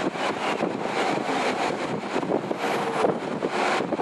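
A heavy truck rumbles past close by.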